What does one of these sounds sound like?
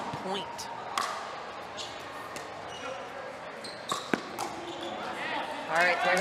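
A paddle strikes a plastic ball with sharp pops.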